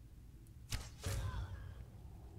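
An arrow strikes with a thud.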